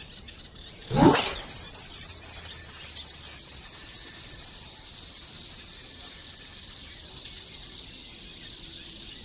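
A fishing rod swishes through a cast and the line hisses out, slowly fading.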